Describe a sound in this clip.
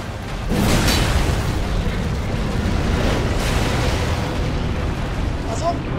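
Fire roars in loud bursts.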